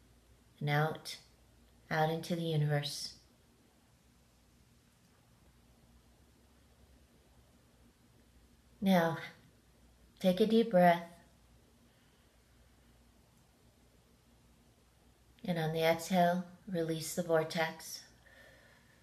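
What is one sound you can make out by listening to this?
A middle-aged woman speaks calmly and close to the microphone, in short bursts with pauses.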